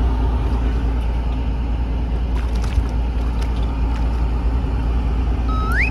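Small waves lap against a boat's hull.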